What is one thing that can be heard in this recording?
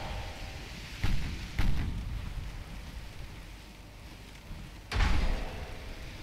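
Naval guns fire with deep booms.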